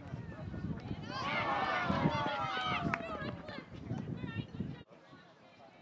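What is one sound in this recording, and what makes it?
A crowd of spectators cheers and shouts.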